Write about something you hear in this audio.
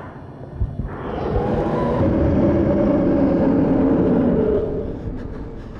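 A creature roars and screeches close by.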